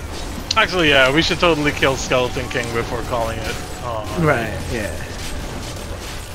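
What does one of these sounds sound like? Electric magic crackles and zaps in a game battle.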